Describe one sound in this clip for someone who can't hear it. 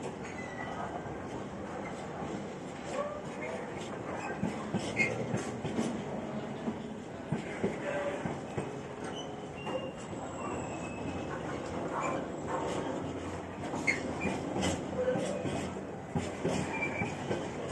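A freight train rolls past close by, its wheels clattering and squealing over the rail joints.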